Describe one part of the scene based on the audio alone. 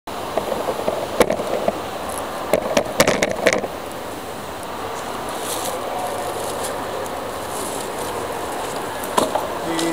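A man talks close by, casually.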